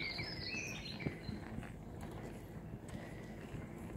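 Footsteps of two people pass by on a paved path.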